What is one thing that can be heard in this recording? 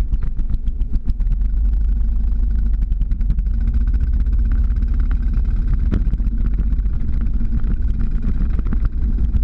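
Wind buffets the microphone in a steady low rumble.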